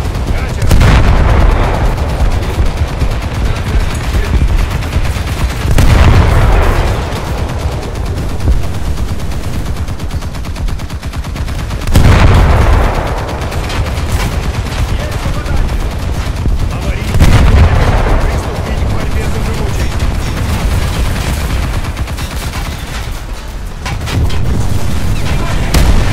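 Heavy guns boom in loud blasts that rumble away.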